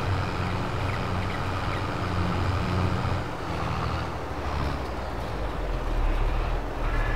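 A tractor engine rumbles steadily as it drives.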